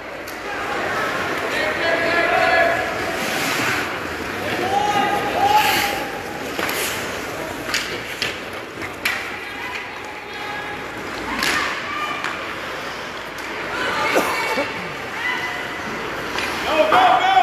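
A crowd of spectators cheers and shouts in an echoing arena.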